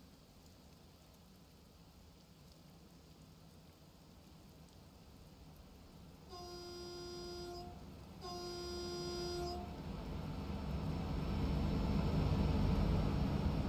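A train approaches and rumbles louder as it nears.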